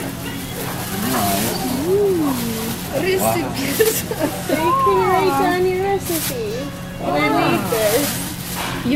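A middle-aged woman talks and laughs nearby.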